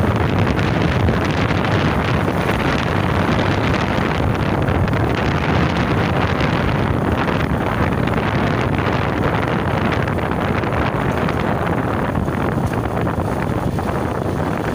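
Wind rushes loudly past a microphone outdoors.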